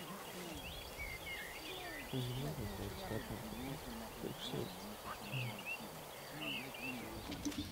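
Men talk quietly outdoors further off.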